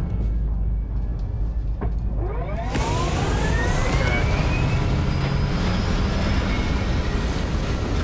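A ship's engines hum low and steady.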